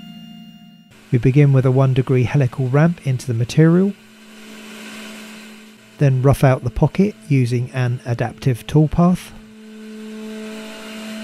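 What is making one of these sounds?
A cutter grinds into metal.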